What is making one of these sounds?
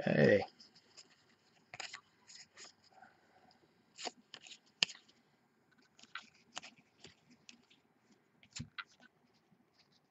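Trading cards softly rustle and click as they are shuffled by hand.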